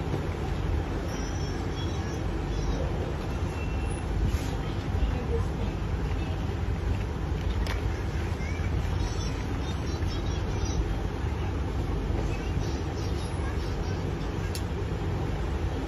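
Plastic sandal parts rustle and click as hands handle and press them together.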